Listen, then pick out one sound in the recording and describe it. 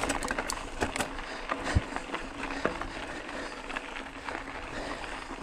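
Bicycle tyres crunch and rattle over a rough gravel trail.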